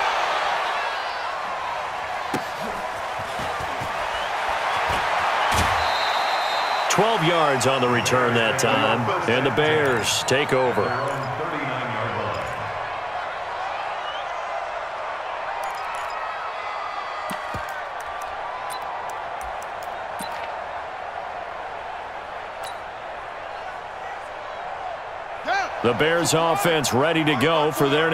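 A large crowd roars and cheers in a big stadium.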